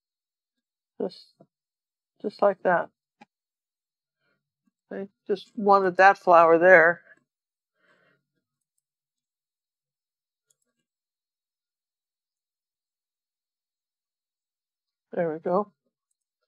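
An older woman talks calmly into a close microphone, in short bursts.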